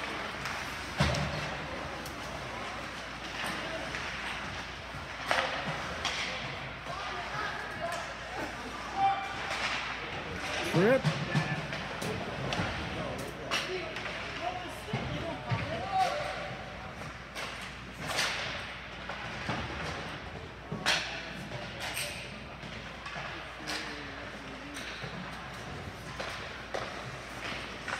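Hockey sticks clack sharply against a puck, now and then.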